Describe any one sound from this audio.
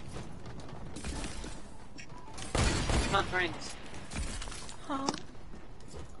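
Game sound effects click and burst loudly.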